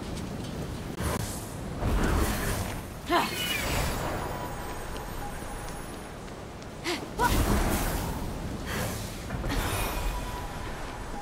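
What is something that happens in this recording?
Large wings whoosh loudly in bursts.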